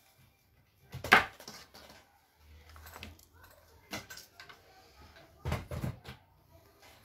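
Thin sticks tap and clatter on a tabletop.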